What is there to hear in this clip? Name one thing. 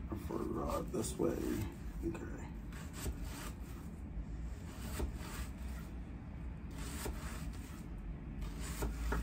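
A knife chops an onion on a wooden board with quick, repeated taps.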